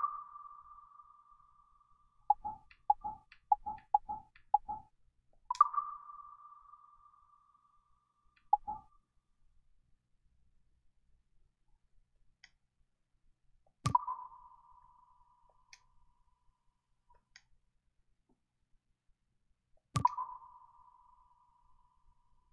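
Short electronic menu tones chime and click as options are changed.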